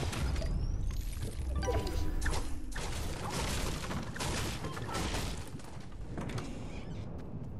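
A pickaxe strikes and breaks wooden objects with sharp cracks.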